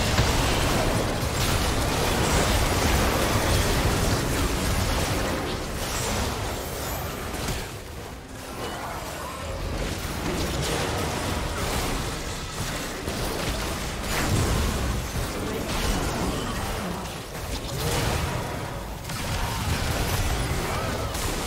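Magic blasts crackle and boom in a fast game battle.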